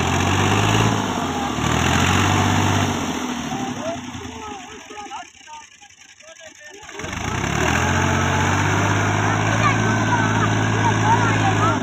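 A tractor engine roars and chugs loudly.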